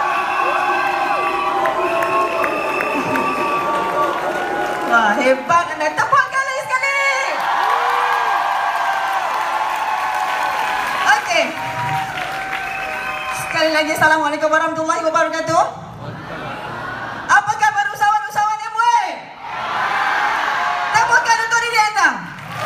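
Music plays loudly over loudspeakers in a large hall.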